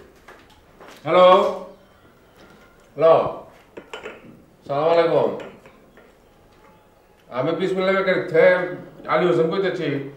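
An elderly man speaks into a phone with animation, close by.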